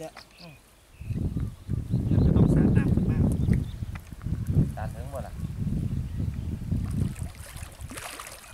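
Water splashes and churns loudly as a man wades through it.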